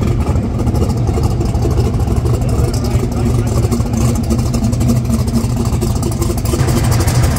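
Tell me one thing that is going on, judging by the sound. A loud race car engine idles close by with a deep, rough, pulsing rumble.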